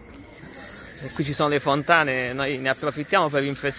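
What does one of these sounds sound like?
Water splashes from a fountain spout onto a metal grate.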